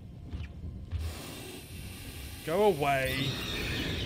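A flamethrower roars and hisses loudly.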